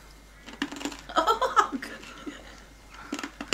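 A woman laughs heartily close to a microphone.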